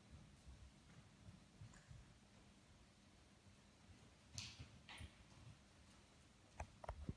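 A horse's hooves thud softly on soft ground.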